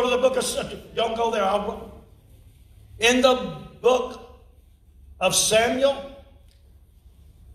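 An elderly man reads aloud calmly through a microphone in a large echoing room.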